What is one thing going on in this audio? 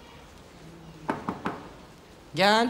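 A man knocks on a door.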